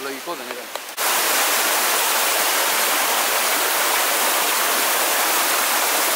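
Water rushes loudly close by.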